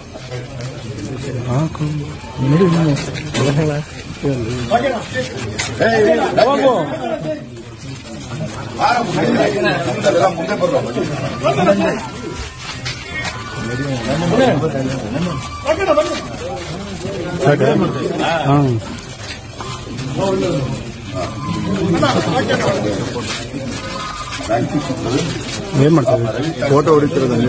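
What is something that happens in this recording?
A group of men talk and cheer close by.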